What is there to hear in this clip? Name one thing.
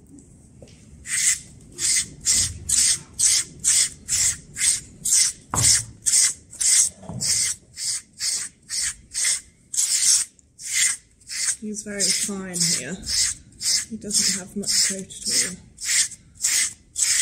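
A brush sweeps rhythmically over a horse's coat in quick, hissing strokes.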